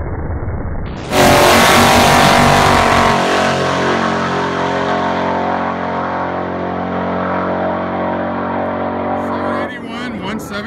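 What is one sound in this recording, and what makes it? A drag car engine roars at full throttle as the car launches and speeds away into the distance.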